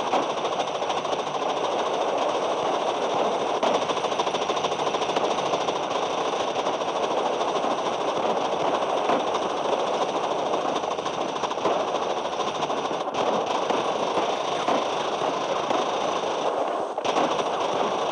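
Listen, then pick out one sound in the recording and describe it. Rapid gunfire crackles continuously in a game battle.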